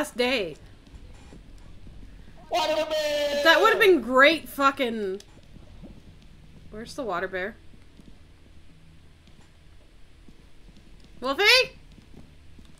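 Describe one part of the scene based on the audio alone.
A young woman speaks with animation into a microphone, in short bursts.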